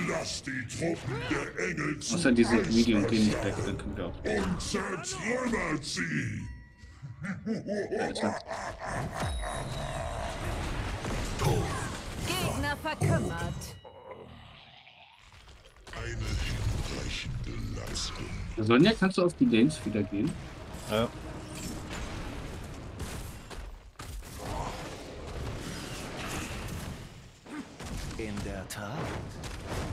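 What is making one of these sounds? Magic blasts and weapon hits clash and crackle in a busy fight.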